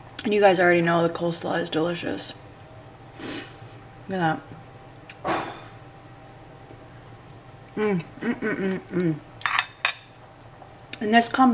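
A fork scrapes and clinks against a plate.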